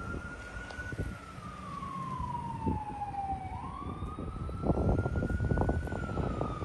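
A van engine hums as the vehicle drives slowly past.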